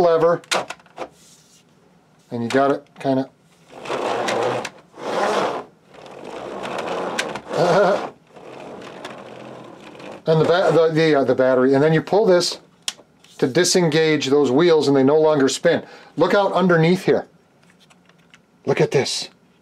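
Wooden model parts click and rattle as hands handle them.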